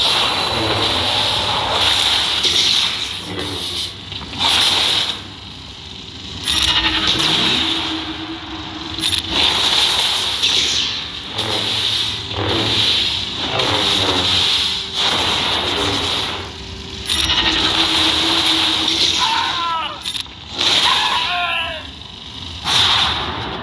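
Lightsabers hum and clash in a game battle.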